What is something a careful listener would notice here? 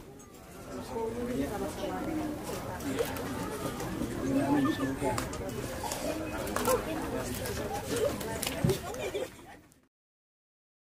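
People clap their hands, close by, outdoors.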